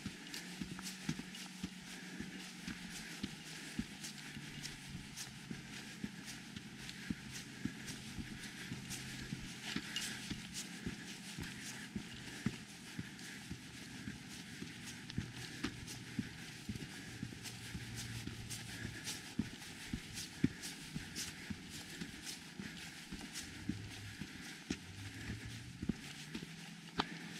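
Footsteps crunch steadily on a dirt trail.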